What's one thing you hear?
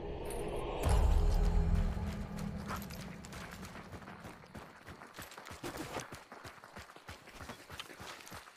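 Footsteps crunch on a dirt path at a walking pace.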